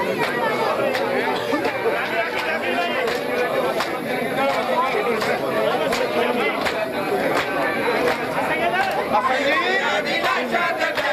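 Many hands beat on bare chests in a steady rhythm.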